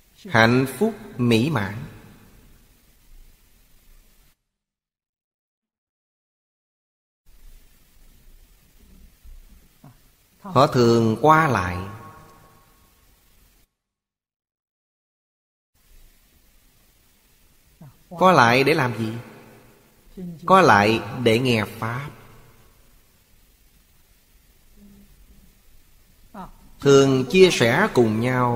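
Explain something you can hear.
An elderly man speaks calmly in short phrases with pauses, close to a microphone.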